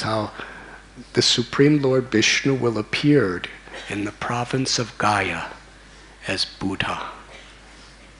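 An older man speaks with animation into a microphone.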